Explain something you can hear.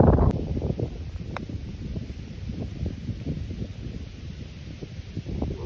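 Wind buffets outdoors with a low rumble.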